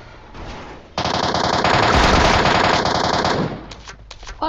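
Rapid gunshots fire in a burst.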